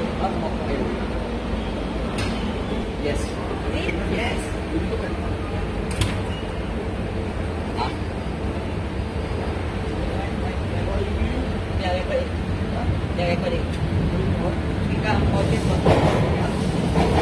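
A train hums and rumbles steadily.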